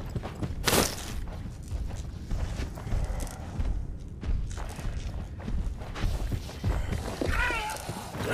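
Heavy footsteps thud steadily across a hard floor.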